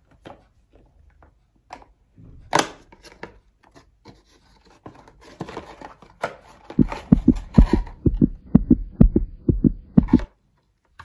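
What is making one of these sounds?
Cardboard packaging rustles and clicks as it is handled.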